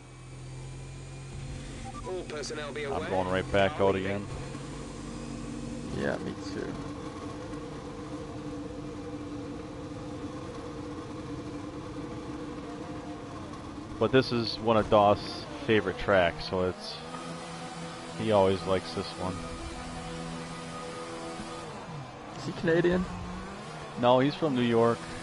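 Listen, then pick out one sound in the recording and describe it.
A racing car engine hums steadily at idle, then drones as the car rolls slowly down the pit lane.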